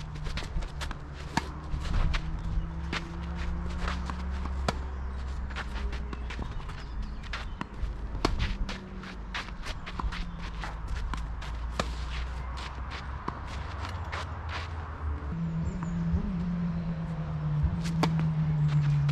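Sneakers scuff and slide on a clay court.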